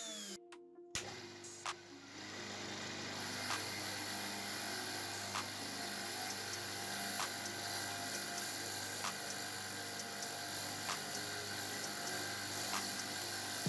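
An electric motor hums steadily as a wire brush wheel spins.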